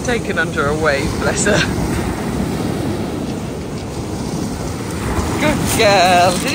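Waves break and wash onto a pebble shore outdoors.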